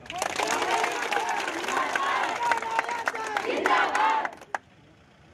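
A crowd of women chants loudly together nearby.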